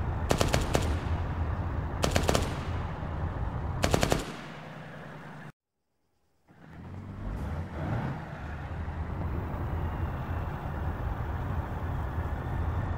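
A tank engine rumbles deeply.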